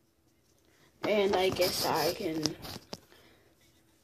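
Something rubs and bumps against a microphone.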